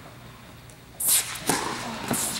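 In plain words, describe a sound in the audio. A tennis racket strikes a ball hard, echoing through a large indoor hall.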